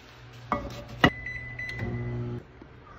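A microwave oven beeps.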